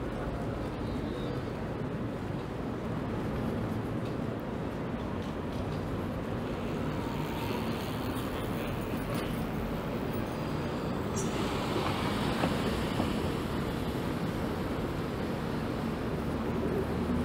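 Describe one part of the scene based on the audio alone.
City traffic hums steadily in the background outdoors.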